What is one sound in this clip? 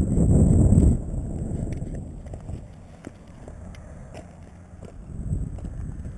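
Footsteps crunch on loose rocky gravel.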